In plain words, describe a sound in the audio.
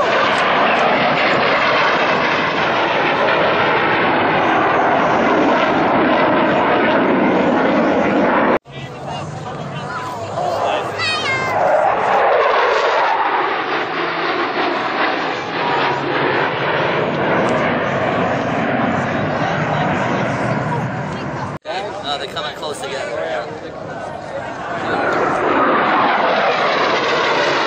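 Jet engines roar loudly overhead outdoors.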